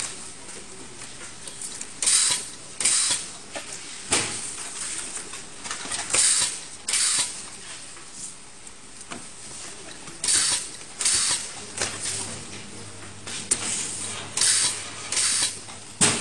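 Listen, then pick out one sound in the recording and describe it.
Cardboard sheets rustle and scrape as they are folded and stacked.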